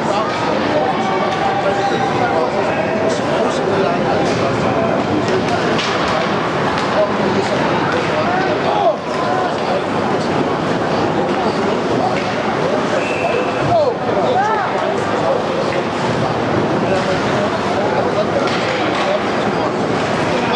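A crowd of spectators chatters and cheers in a large echoing rink.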